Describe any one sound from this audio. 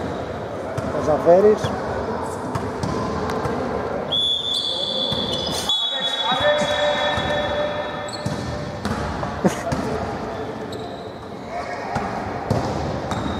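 Basketball shoes squeak on a hard court in a large echoing hall.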